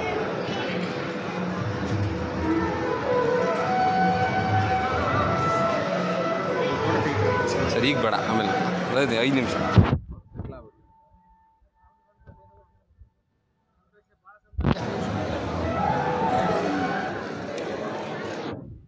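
A crowd of men and women chatters all around in a busy echoing hall.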